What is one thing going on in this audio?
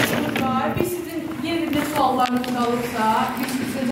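A young girl speaks into a microphone over loudspeakers in an echoing hall.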